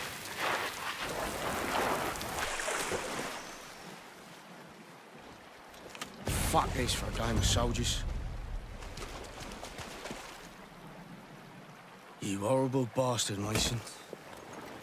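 A stream of water rushes over rocks.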